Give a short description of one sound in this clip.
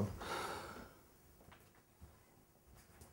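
Footsteps cross a room.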